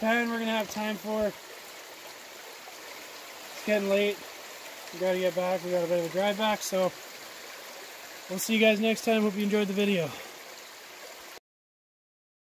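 A stream flows and trickles over stones.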